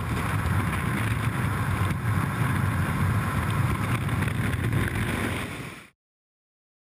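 Strong wind roars loudly past during a freefall.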